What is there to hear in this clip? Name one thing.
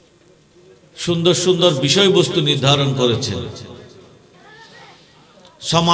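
An elderly man preaches loudly and with fervour into a microphone, heard through loudspeakers with echo.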